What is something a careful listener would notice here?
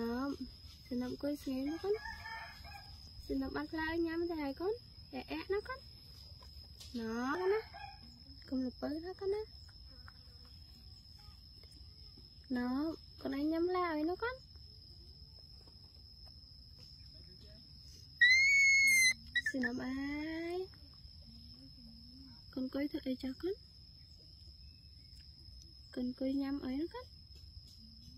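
A baby monkey squeals and chirps close by, in short bursts.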